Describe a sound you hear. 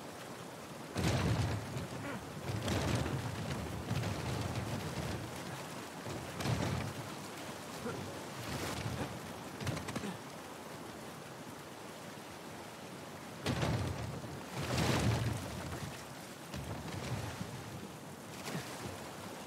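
A heavy wooden crate scrapes and thuds across stone.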